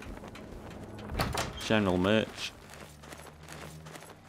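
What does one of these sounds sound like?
A wooden door creaks open and thuds shut.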